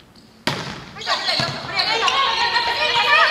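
Young women shout and call out loudly to each other.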